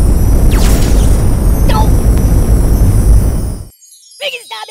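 A deep swirling roar rumbles loudly, then cuts off.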